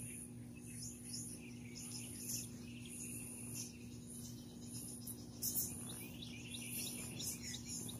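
A heavy plastic tarp rustles and drags across grass.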